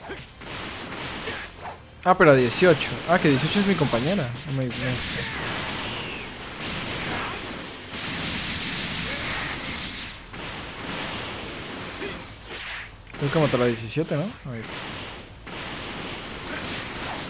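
Energy blasts whoosh and crackle.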